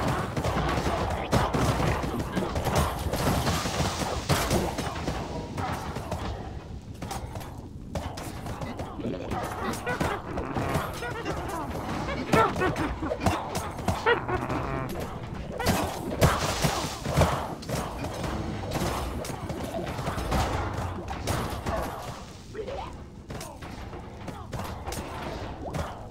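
Game creatures hiss, groan and squeal in a dense clamour.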